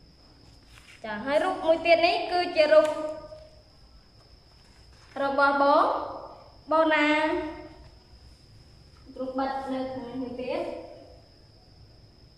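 A young woman speaks clearly and with expression, close by, in short phrases.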